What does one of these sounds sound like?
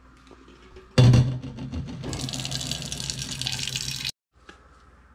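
Water runs from a tap into a metal pot.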